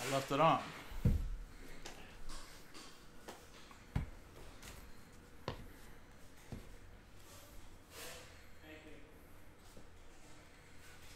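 Cards shuffle and tap against a table.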